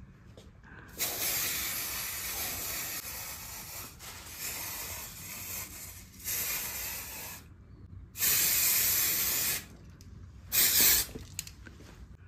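An aerosol can sprays in loud hissing bursts, close by.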